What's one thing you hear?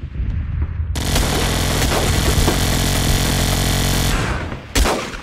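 A loud explosion roars and rumbles.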